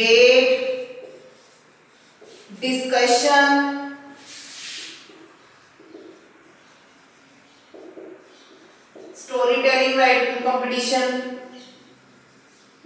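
A woman speaks clearly in bursts, close by, as if explaining.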